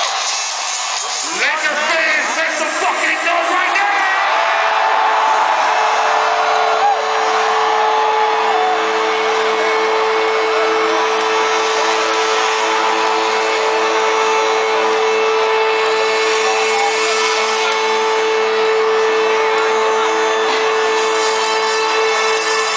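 A large crowd cheers and screams loudly in a huge echoing arena.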